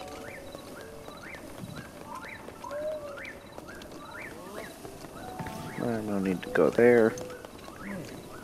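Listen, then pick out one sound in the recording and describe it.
Footsteps patter quickly on wooden boards.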